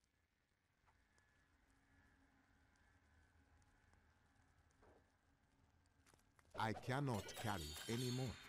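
A magical shimmering effect rings out as glowing orbs burst apart.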